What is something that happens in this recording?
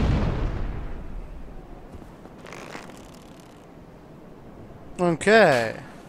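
A large creature's tail swishes heavily through the air.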